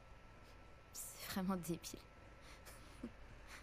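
A teenage girl laughs and speaks with amusement.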